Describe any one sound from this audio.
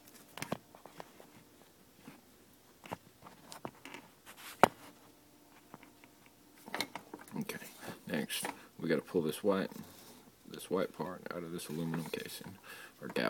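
A plastic connector clicks and taps as it is handled.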